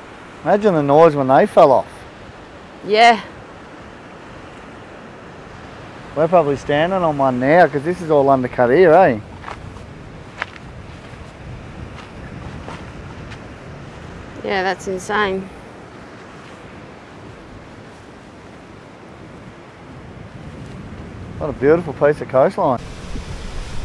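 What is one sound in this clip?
A man talks calmly in short bursts close by.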